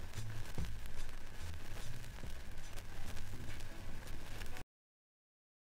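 Music plays from a vinyl record.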